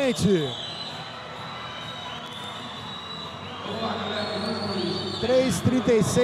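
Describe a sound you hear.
A crowd cheers in a large echoing hall.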